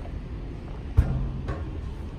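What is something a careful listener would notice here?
A thump sounds as a man steps onto a chair.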